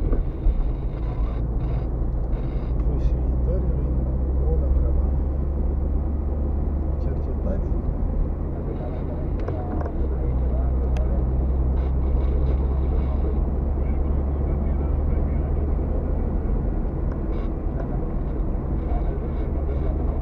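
Tyres rumble over a rough paved road.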